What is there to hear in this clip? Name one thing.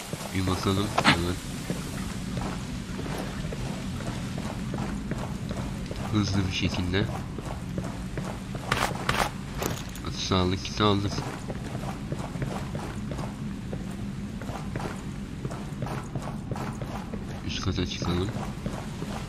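A young man talks calmly into a close microphone, in short bursts.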